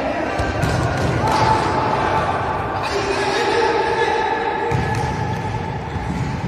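A ball is kicked with dull thumps in an echoing hall.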